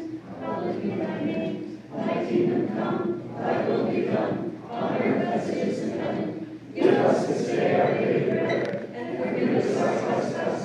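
A group of men and women chant together in a small echoing room.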